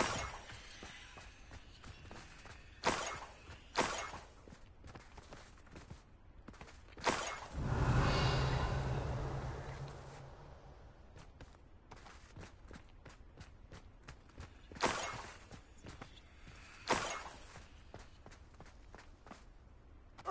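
Footsteps crunch on snow at a steady walking pace.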